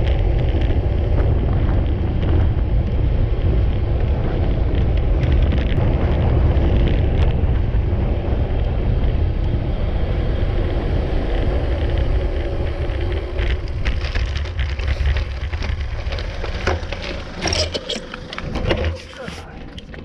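Wind roars over a microphone on a fast-moving bicycle, then dies down as the bicycle slows.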